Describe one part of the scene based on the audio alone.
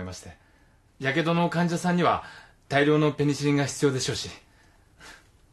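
A young man answers cheerfully nearby.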